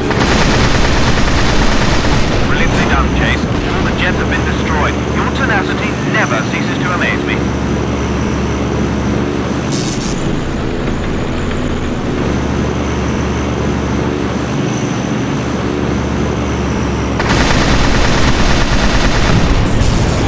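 Aircraft engines roar steadily.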